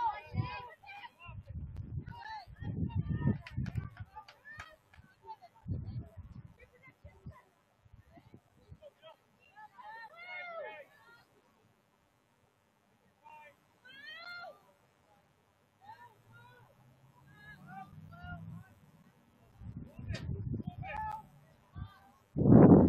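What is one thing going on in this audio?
Young players shout and call to each other in the distance across an open field.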